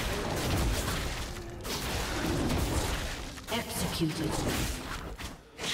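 Video game combat effects whoosh and clash.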